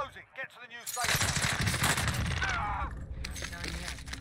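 A rifle fires rapid shots in a burst.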